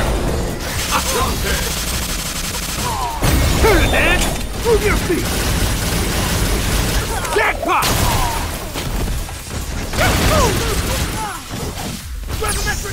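Energy blasts and hits crackle and boom rapidly throughout a video game fight.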